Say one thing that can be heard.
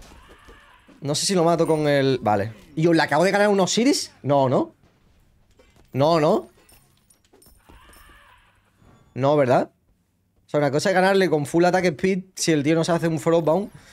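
A young man talks loudly and with animation into a close microphone, in bursts.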